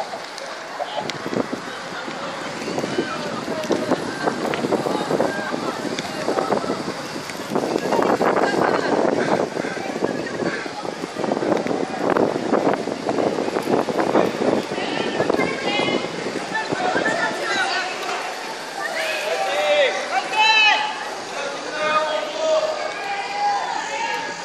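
Inline skate wheels roll and rumble over pavement close by.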